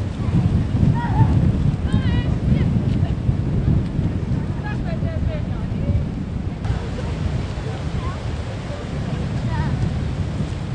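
Children chatter and call out outdoors.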